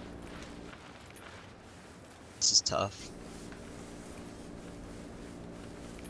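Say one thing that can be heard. Grass rustles as a soldier crawls through it.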